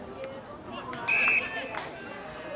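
A referee's whistle blows once, sharply.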